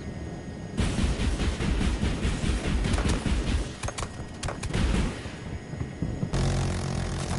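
Rockets fire and whoosh away in quick bursts.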